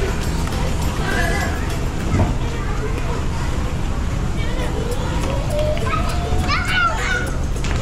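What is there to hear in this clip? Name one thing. Plastic balls rattle and clatter as a child wades through them.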